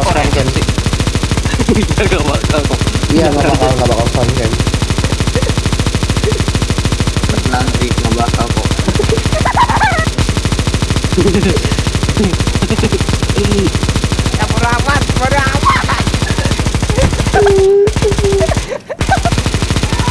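A machine gun fires in rapid, continuous bursts.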